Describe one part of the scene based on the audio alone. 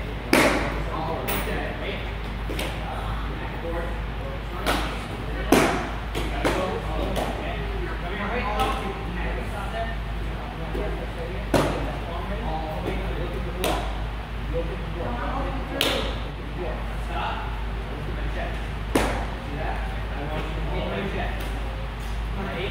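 Children talk and call out in the background.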